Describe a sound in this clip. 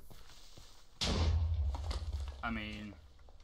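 A loud explosion booms and quickly fades.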